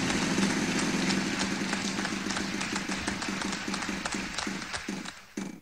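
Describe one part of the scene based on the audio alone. A spinning prize wheel ticks rapidly, then slows down.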